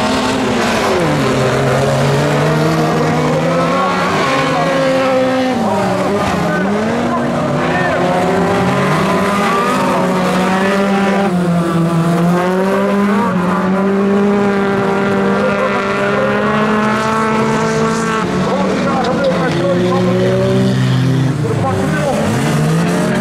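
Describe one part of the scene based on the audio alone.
Several racing car engines roar and rev hard, rising and falling in pitch.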